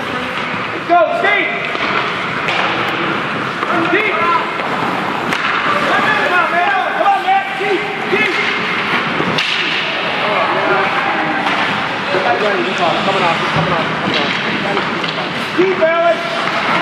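Hockey sticks smack a puck with sharp cracks.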